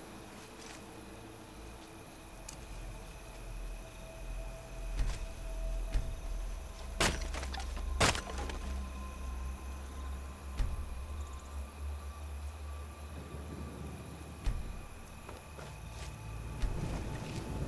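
A torch flame burns and crackles close by.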